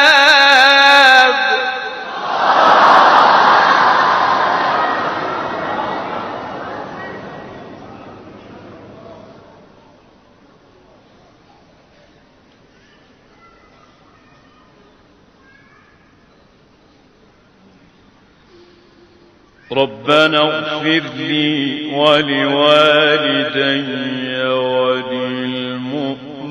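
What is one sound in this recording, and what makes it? A man chants in a long, wavering melodic voice through a microphone.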